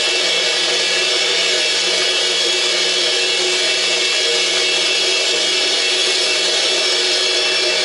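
An electric guitar plays loud, distorted noise.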